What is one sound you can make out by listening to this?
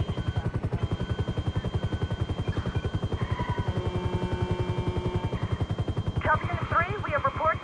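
A helicopter's rotor thumps steadily and rapidly overhead.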